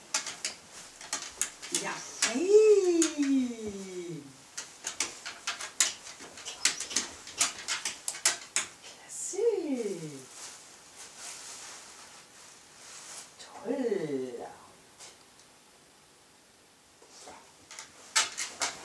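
A dog's claws tap and click on a hard floor.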